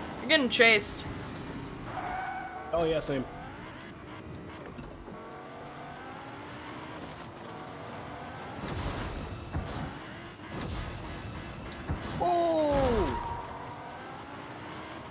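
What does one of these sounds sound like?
A car engine revs and hums steadily.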